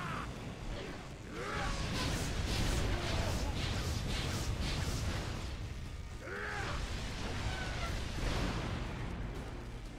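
Fiery blasts boom and rumble heavily.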